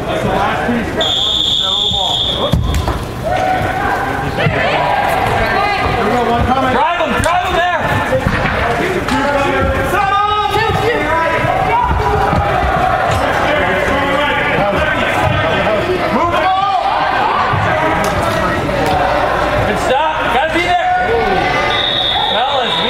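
Adult spectators shout and cheer in a large echoing indoor arena.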